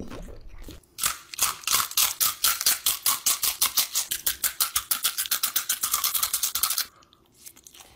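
A person crunches loudly on crispy food close up.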